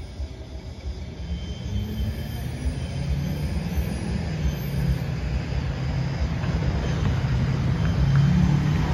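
A truck rolls along railway tracks with a low rumble that grows louder as it nears.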